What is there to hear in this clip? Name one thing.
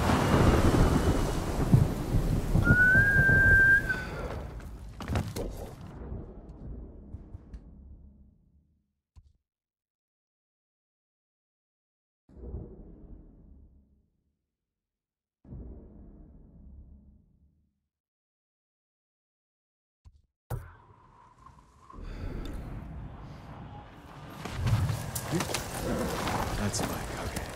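Wind gusts through tall grass.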